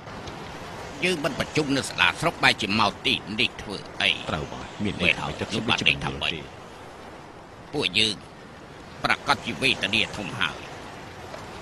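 A man speaks loudly and sternly.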